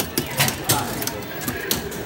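Arcade buttons and a joystick click rapidly.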